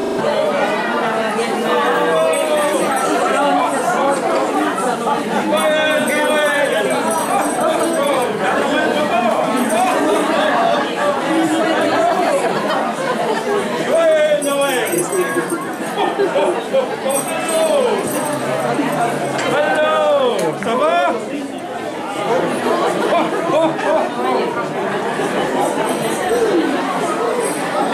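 A crowd of adults and children chatters throughout, indoors.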